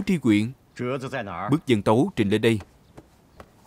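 A man speaks commandingly, close by.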